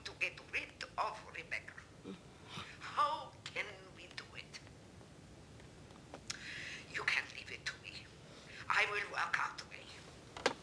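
A middle-aged woman talks calmly on a telephone nearby.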